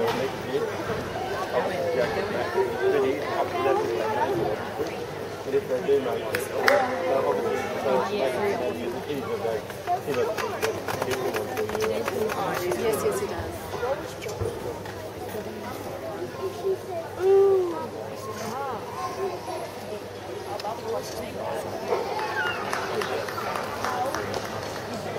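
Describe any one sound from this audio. Gymnastic rings creak and rattle as a gymnast swings.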